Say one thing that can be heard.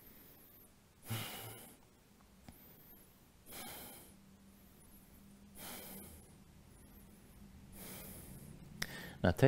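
A man breathes out deeply and slowly.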